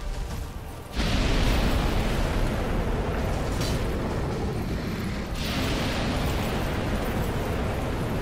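Flames whoosh and roar.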